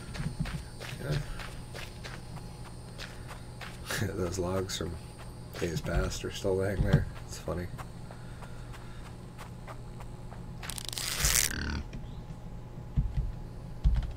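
Footsteps tread through grass and leaves.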